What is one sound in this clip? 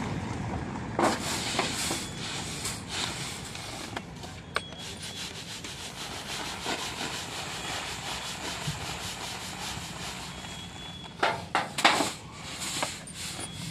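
Grain rustles and patters as it is poured and tossed from a winnowing tray.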